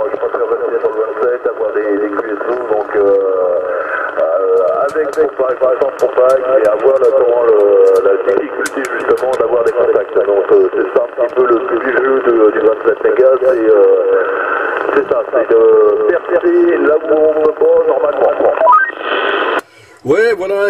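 A radio loudspeaker plays a muffled, crackly transmission.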